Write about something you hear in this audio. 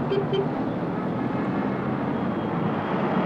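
A van engine hums as it drives past.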